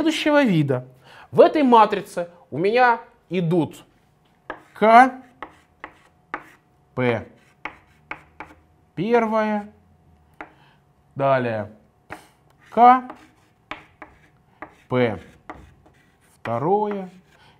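A man speaks calmly, in short phrases, nearby.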